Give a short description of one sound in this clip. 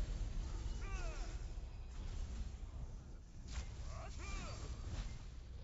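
Pitched magical effects chime and ring out.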